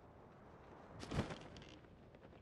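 A glider snaps open with a sharp flutter.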